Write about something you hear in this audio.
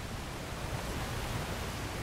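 A waterfall splashes and rushes steadily.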